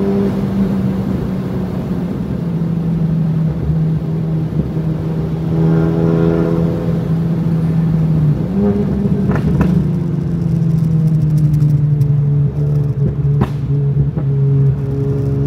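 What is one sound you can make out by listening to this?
The engine of a turbocharged four-cylinder car drones under load at speed.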